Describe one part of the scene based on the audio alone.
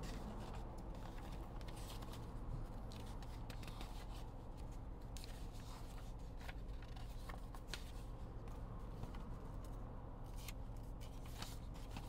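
Paper pages rustle and flip as a booklet is handled.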